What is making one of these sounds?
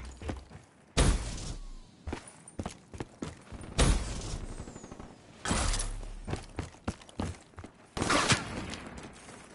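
A rifle fires loud, booming shots that echo away.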